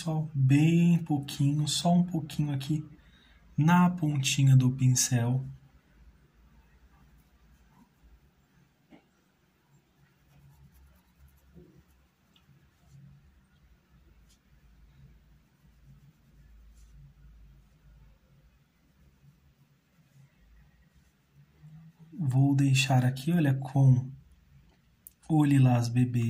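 A paintbrush brushes softly across cloth.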